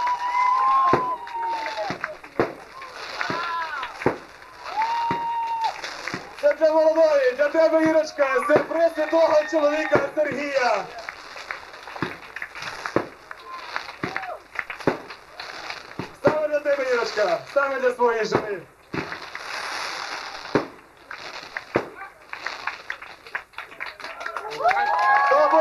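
Fireworks bang loudly one after another outdoors.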